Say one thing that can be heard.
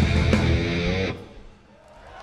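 An electric guitar plays loudly.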